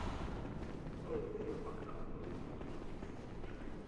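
Footsteps patter quickly across a stone floor in a large echoing hall.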